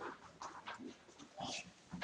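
Paper rustles in a young man's hands.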